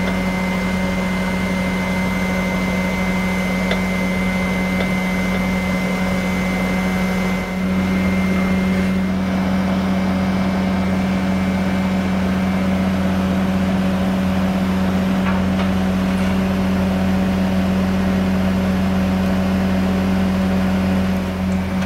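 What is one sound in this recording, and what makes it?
The diesel engine of a skid steer loader idles.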